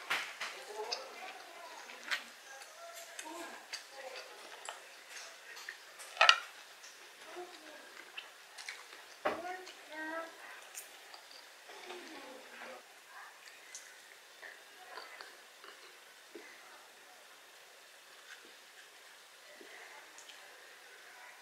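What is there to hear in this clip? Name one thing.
A woman chews food wetly, close to a microphone.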